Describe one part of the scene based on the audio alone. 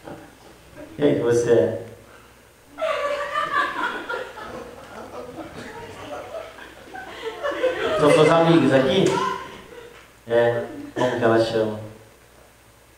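A young woman speaks into a microphone, laughing shyly.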